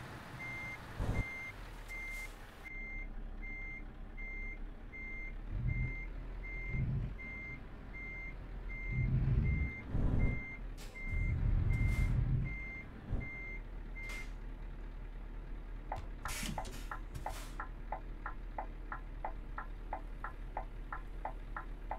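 A truck engine rumbles low and steady.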